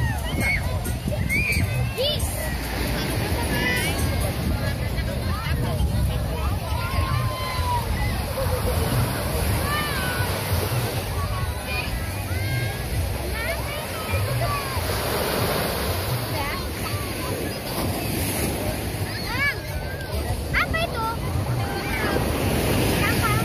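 Children shout and call out at a distance.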